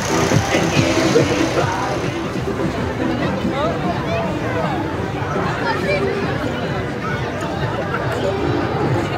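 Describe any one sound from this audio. A crowd of onlookers chatters outdoors.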